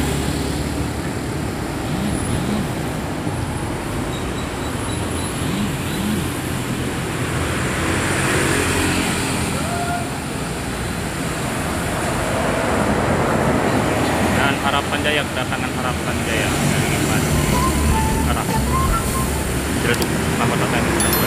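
Traffic rumbles steadily along a busy road outdoors.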